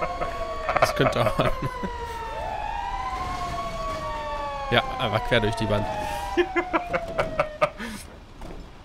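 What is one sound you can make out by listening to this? A fire truck siren wails and sweeps up and down.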